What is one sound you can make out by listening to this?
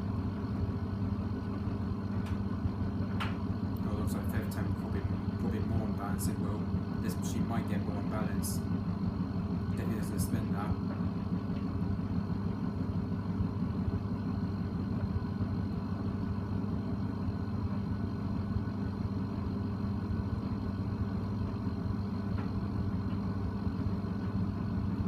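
Water and laundry slosh inside a washing machine drum.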